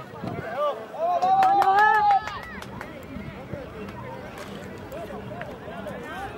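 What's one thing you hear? Young players and spectators call out across an open field outdoors.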